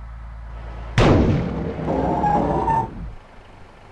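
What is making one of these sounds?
A truck's air brakes hiss sharply.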